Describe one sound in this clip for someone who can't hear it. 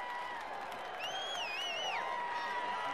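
A referee's whistle blows in short trills.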